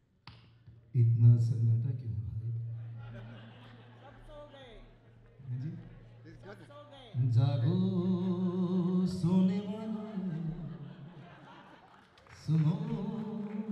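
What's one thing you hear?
A man sings into a microphone over loudspeakers.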